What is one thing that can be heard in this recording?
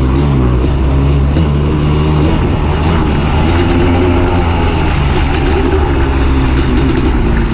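A dirt bike engine roars steadily up close, its pitch rising and falling.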